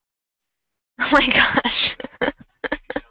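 A young woman laughs through an online call.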